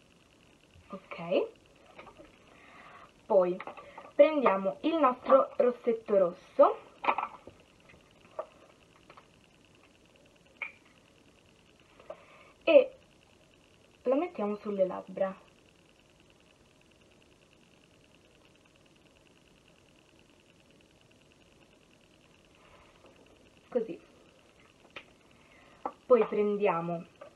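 A girl talks calmly and close by, in short bursts with pauses.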